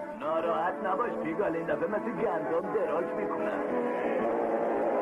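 A man's cartoon voice talks with animation.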